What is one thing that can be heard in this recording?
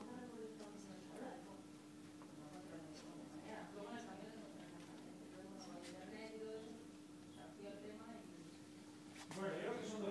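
A woman speaks calmly through a loudspeaker.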